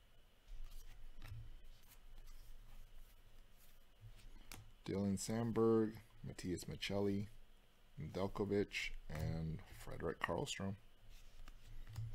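Trading cards slide and flick against each other in a pile.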